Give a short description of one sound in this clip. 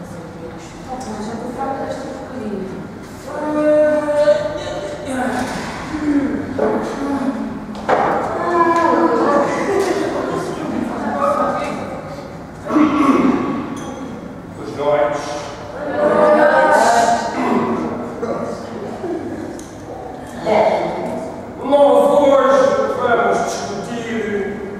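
Young performers speak and call out with animation in an echoing room.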